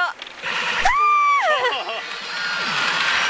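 A young woman screams with excitement.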